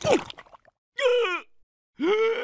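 Two cartoon creatures laugh loudly together.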